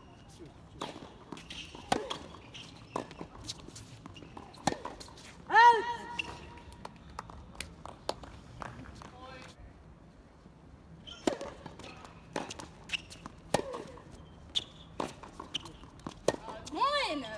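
Tennis balls are struck with sharp pops of a racket, back and forth.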